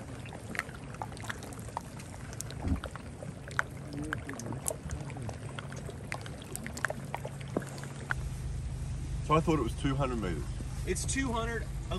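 Floating ice crackles and pops with sharp little clicks.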